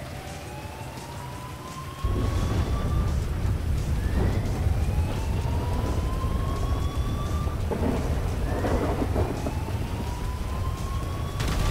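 Footsteps splash through puddles at a run.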